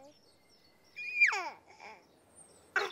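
A baby giggles happily.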